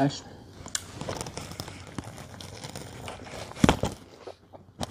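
A woman chews and bites into a sandwich with wet, crunchy sounds.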